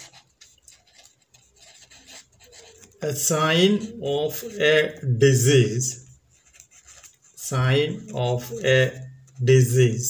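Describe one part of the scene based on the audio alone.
A marker scratches across paper as it writes.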